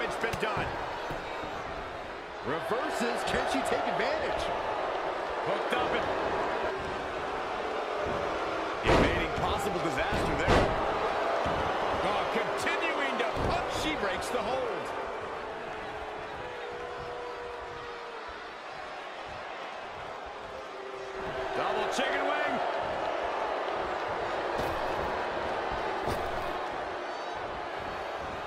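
A large crowd cheers and roars in a big arena.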